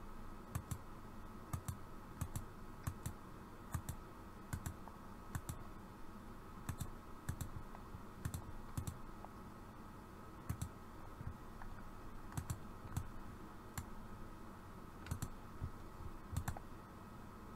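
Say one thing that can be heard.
A computer mouse clicks in quick pairs, again and again, close by.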